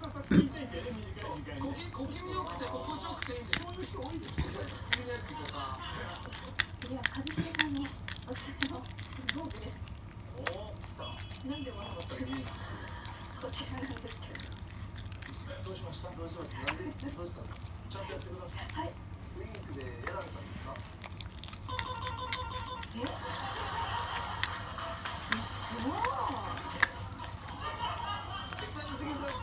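A small dog chews and crunches on a treat close by.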